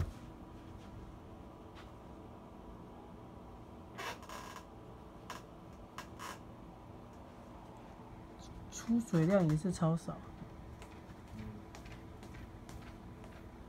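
Fingers softly rub and tap a terry towel.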